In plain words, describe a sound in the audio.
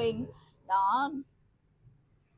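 A young woman speaks brightly and close to the microphone.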